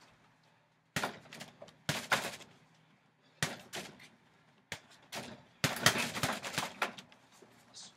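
Gloved punches thud against a heavy punching bag.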